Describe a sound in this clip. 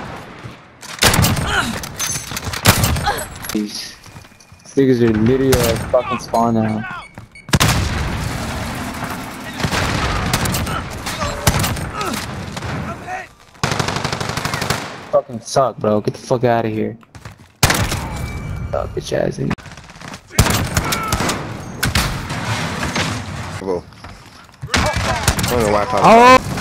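Sniper rifle shots ring out sharply, one at a time.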